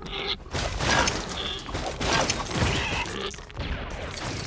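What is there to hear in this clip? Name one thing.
Plastic bricks clatter and scatter.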